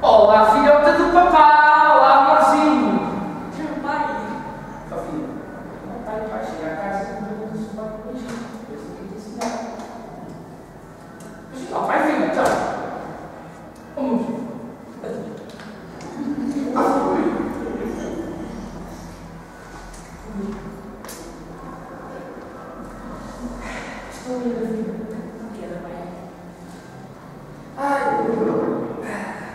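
A young woman speaks with feeling on a stage in a reverberant hall.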